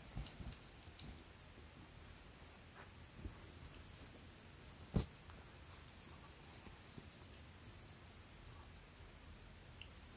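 Cloth rustles softly as a shirt is laid down and smoothed by hand.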